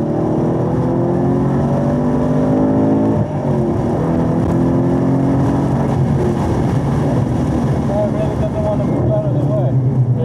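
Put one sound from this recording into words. A car engine roars loudly, rising in pitch as it accelerates.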